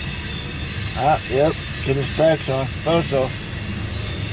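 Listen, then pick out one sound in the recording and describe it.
A train horn blasts in several short bursts.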